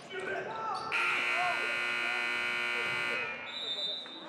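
A buzzer sounds loudly.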